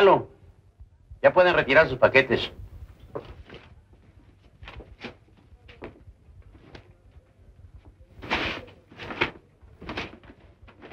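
A middle-aged man speaks briskly nearby.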